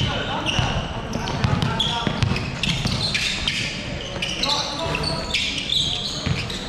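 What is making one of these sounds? Basketball shoes squeak sharply on a hardwood court in a large echoing hall.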